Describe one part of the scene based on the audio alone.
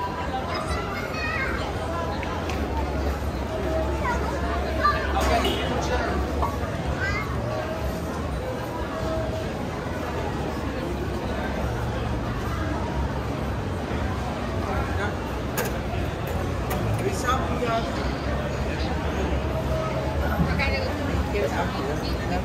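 A crowd of people chatter all around under a large echoing roof.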